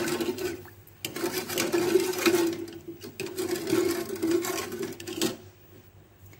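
A metal ladle stirs and scrapes inside a pot of liquid.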